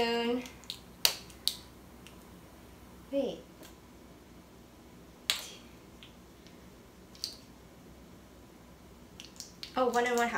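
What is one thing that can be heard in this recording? Plastic crinkles and taps as it is handled.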